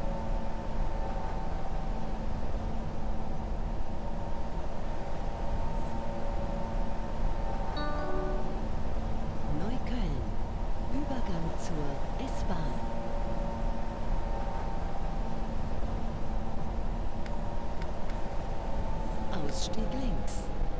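A train's motor hums steadily as it runs through a tunnel.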